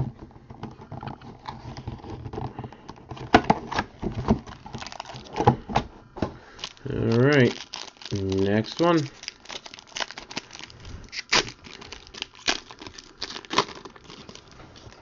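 Plastic wrapping crinkles and tears as hands open a pack.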